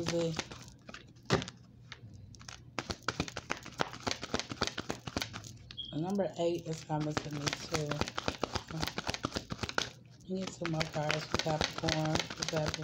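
Playing cards are shuffled with quick flicking riffles.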